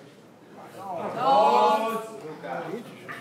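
A man shouts excitedly nearby.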